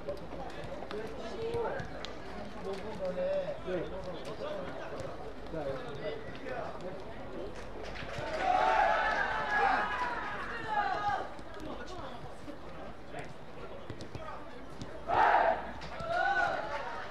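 Young players shout to each other across an open outdoor field.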